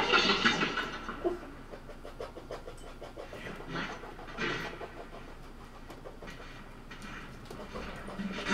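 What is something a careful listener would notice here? A percussionist taps and scrapes small objects.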